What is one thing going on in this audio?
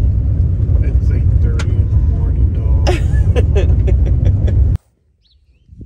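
A vehicle engine rumbles steadily from inside the cab.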